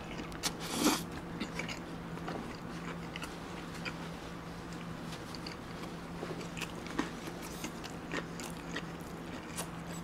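A young man chews food with loud, wet, close crunching and smacking sounds.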